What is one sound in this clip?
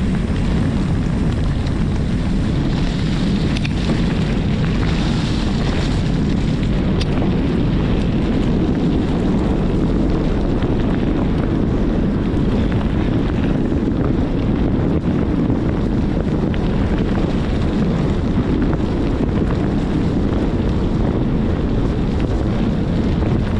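Bicycle tyres roll steadily over a gravel track strewn with leaves.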